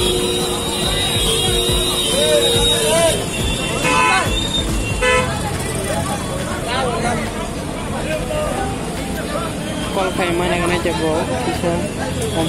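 A crowd of men talks and calls out nearby outdoors.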